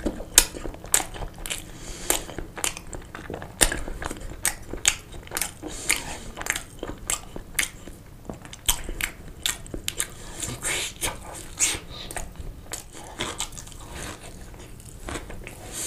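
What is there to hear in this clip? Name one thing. A man bites into a sausage close to the microphone.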